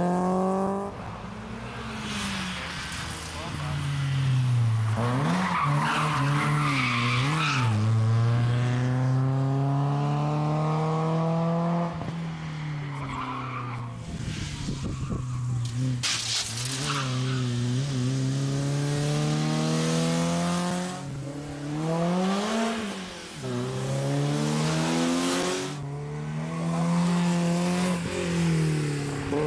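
A rally car engine revs hard and roars past, rising and falling in pitch.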